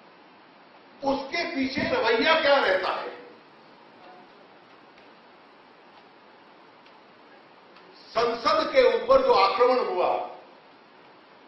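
A middle-aged man speaks with animation into a microphone, in short bursts with long pauses.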